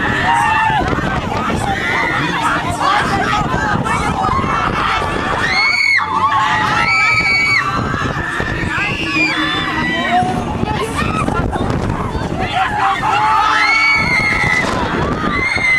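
A swinging fairground ride rumbles as it spins.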